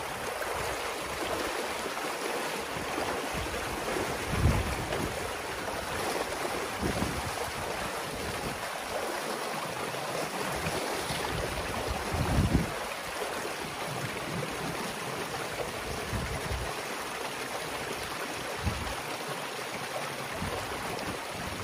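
Boots slosh and splash through shallow muddy water.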